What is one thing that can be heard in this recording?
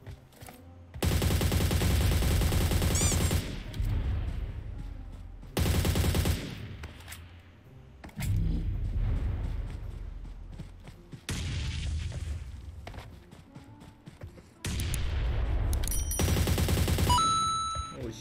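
Rapid gunfire bursts loudly, in short rounds.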